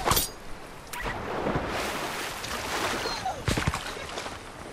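Water splashes and swishes as someone swims.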